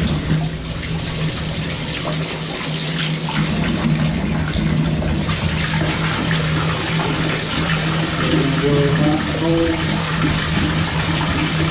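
Water gushes from a pipe and splashes into a bathtub.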